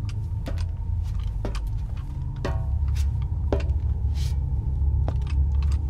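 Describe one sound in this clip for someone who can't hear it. Boots clank on metal stairs.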